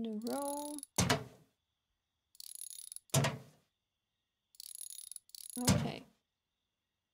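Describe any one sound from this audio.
A metal part drops with a heavy clunk.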